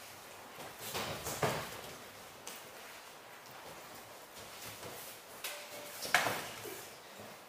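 Blows land with sharp thuds in an echoing hall.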